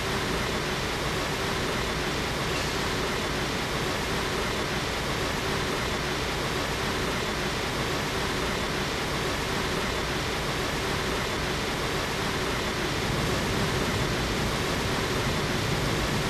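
Water sprays and hisses steadily onto a car.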